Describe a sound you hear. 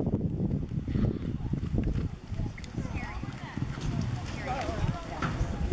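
A horse gallops, its hooves thudding on soft dirt.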